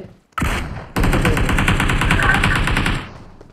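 A rifle fires in a rapid automatic burst.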